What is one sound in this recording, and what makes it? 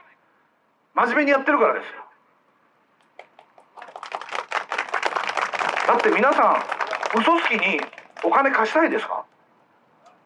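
A middle-aged man speaks forcefully into a microphone through a loudspeaker outdoors.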